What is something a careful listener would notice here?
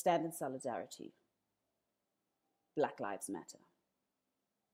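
A woman speaks earnestly into a close microphone, in short bursts with pauses.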